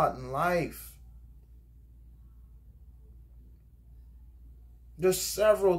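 A man speaks calmly close to the microphone, with pauses.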